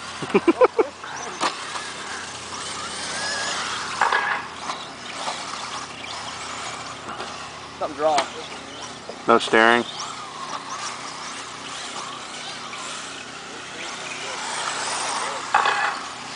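Small radio-controlled cars whine and buzz as they race around a dirt track outdoors.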